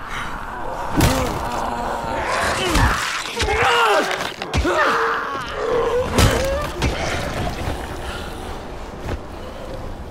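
A blunt weapon strikes flesh with heavy thuds.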